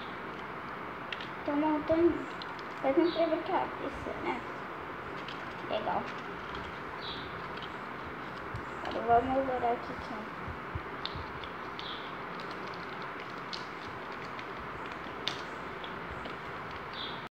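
Plastic crinkles and clicks as small toys are handled.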